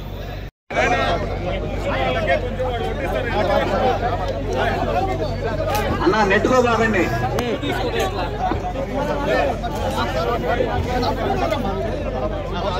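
A crowd of men talks and calls out loudly all around, close by.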